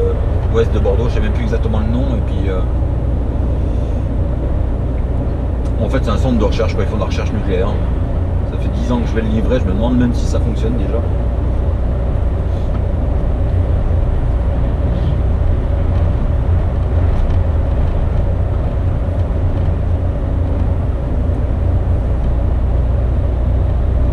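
A truck engine drones with a steady low rumble.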